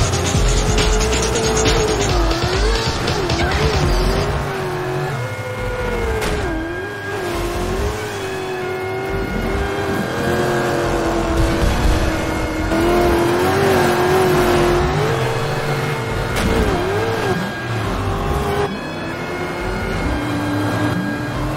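Tyres spray loose dirt and gravel.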